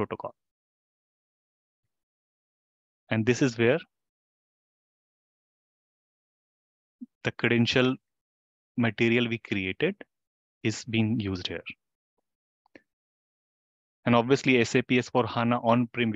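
A man speaks calmly and steadily into a close microphone, in short bursts with pauses.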